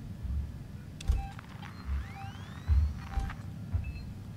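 A handheld tracker beeps and chirps.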